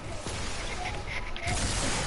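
A pickaxe strikes a wall with a thud.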